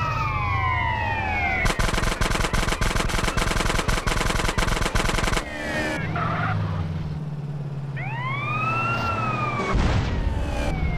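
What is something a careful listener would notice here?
A motorcycle engine hums and revs.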